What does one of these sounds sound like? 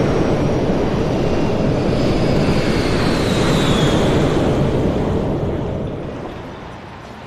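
A jet airliner roars loudly down the runway on takeoff.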